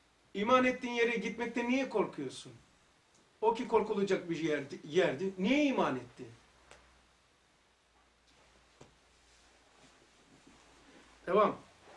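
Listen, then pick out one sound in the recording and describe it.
An elderly man speaks calmly and with emphasis, close by.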